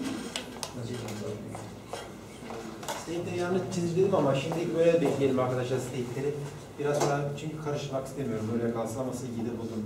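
A man speaks steadily to a room, lecturing.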